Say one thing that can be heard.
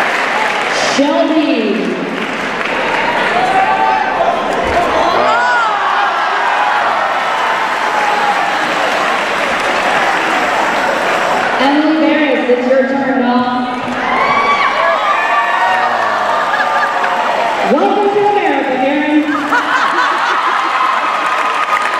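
Young people scream and laugh close by.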